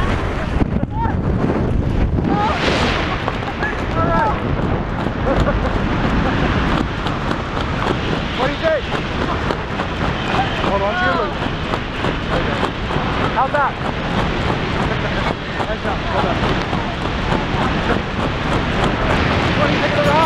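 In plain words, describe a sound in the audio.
Strong wind roars loudly and steadily.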